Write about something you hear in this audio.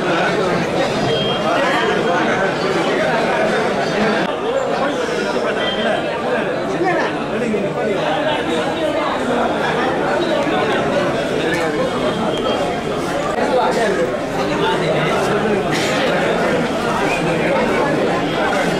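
A large crowd of men and women chatters loudly all around.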